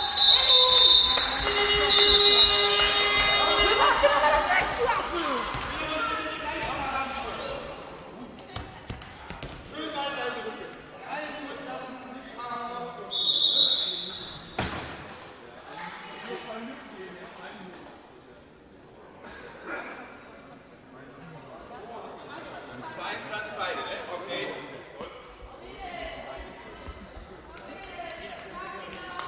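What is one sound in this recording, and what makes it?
Young women shout and call out, echoing around a large hall.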